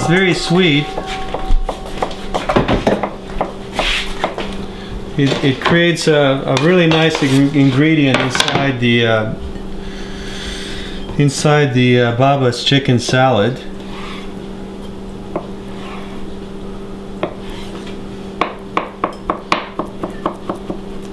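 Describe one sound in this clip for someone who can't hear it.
A knife chops on a plastic cutting board.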